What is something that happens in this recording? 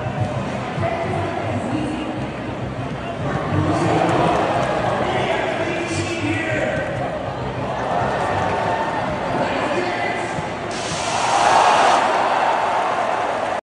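A large stadium crowd murmurs and cheers, loud and echoing.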